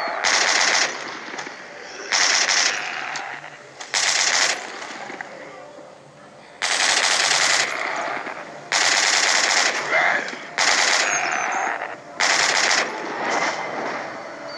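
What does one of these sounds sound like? A mounted machine gun fires loud bursts.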